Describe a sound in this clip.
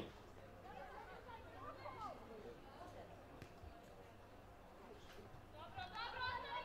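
Young women shout to each other from a distance outdoors.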